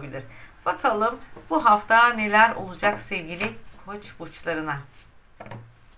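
A middle-aged woman speaks calmly and warmly close by.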